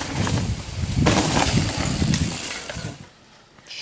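A bicycle rushes past close by.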